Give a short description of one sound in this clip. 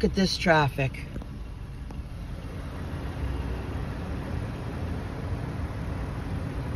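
Traffic hums steadily outside a car.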